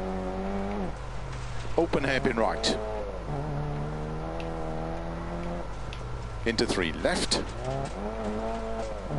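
A car engine roars and shifts up and down in pitch.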